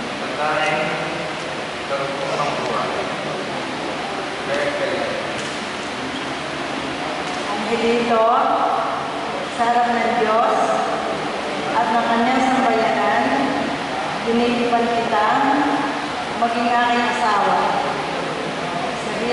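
An elderly man chants a prayer in a sing-song voice through a microphone in a large echoing hall.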